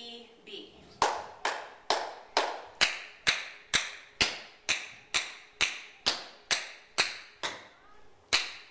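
Tap shoes strike a wooden floor in a quick, even rhythm.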